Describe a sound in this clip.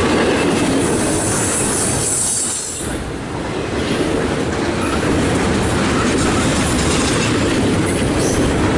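Steel wheels clatter over rail joints.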